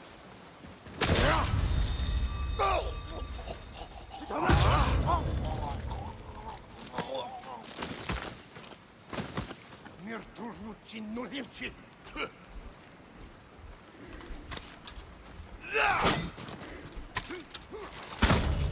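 Swords clash and slash in quick blows.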